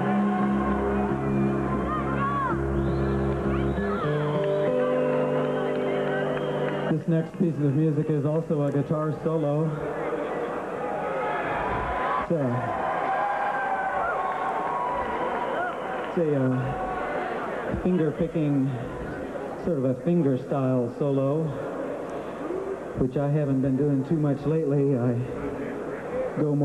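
An acoustic guitar is strummed and picked.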